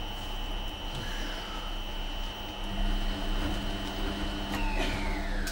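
A washing machine hums steadily.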